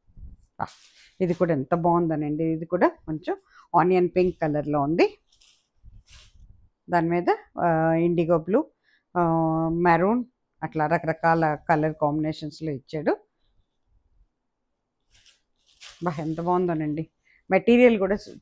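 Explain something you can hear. A middle-aged woman speaks calmly into a clip-on microphone.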